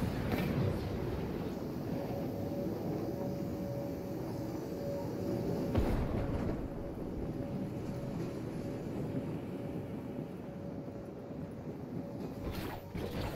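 Wind rushes steadily past during a glide.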